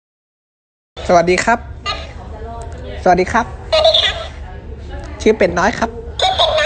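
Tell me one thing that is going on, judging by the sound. A plush toy speaks and sings in a high, squeaky electronic voice.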